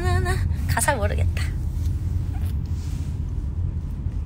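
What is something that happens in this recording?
A young woman laughs softly close to a phone microphone.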